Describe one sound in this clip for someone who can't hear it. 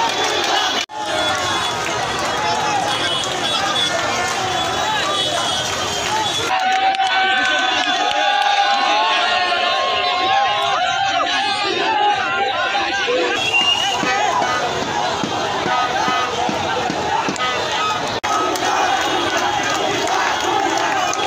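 A large crowd of young men cheers and chants loudly outdoors.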